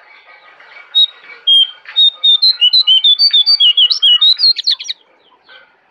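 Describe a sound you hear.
A bird sings a loud, rapid string of whistled notes close by.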